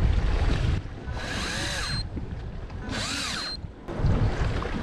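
An electric fishing reel whirs as it winds in line.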